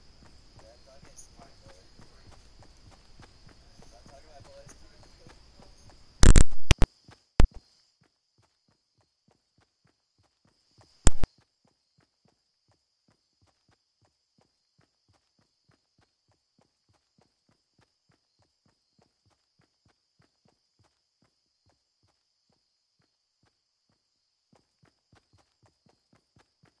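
Footsteps run quickly and steadily over grass.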